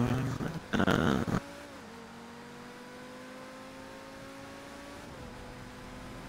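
A sports car engine hums steadily as the car speeds along a road.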